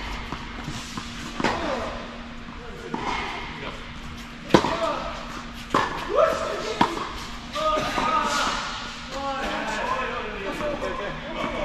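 Tennis balls bounce on a hard court.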